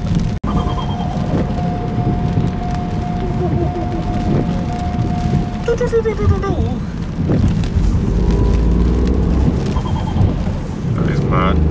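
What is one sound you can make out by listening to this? Rain patters on a car's windscreen.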